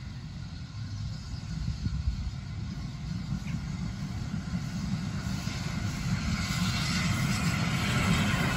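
A steam locomotive chuffs steadily as it approaches, growing louder.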